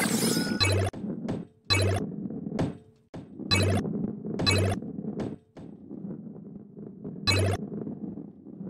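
Bright chimes ping as coins are collected.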